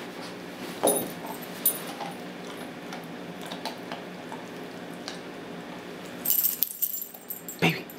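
A dog gnaws and crunches on a chew bone.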